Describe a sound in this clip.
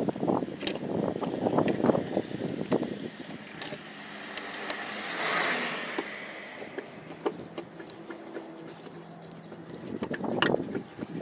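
A metal jack handle clinks and scrapes as it is cranked.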